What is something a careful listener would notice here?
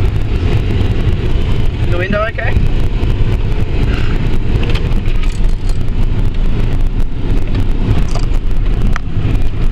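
A vehicle's body rattles and bumps over uneven ground.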